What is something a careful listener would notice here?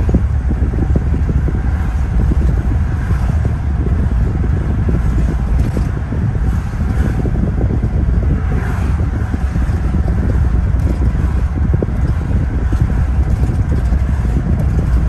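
A car's engine hums steadily, heard from inside.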